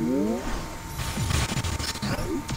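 A magic blast bursts loudly.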